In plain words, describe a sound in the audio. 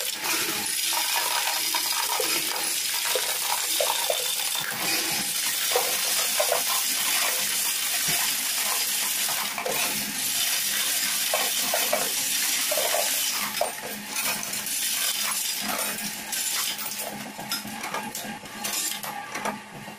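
Coins clatter and jingle rapidly through a sorting machine.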